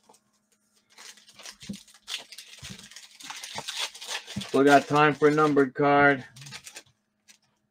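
A foil pack crinkles and tears as it is opened.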